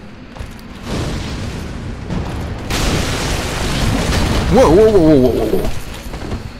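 A burst of fire whooshes and roars.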